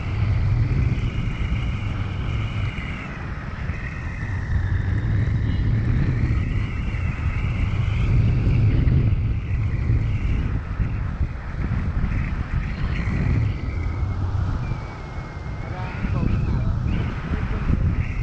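Wind roars steadily against a microphone outdoors.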